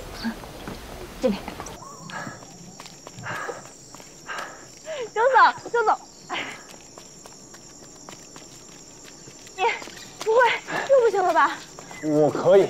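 A young woman speaks cheerfully, close by.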